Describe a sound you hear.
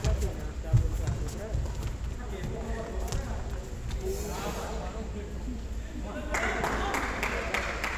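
Badminton rackets strike a shuttlecock in an echoing indoor hall.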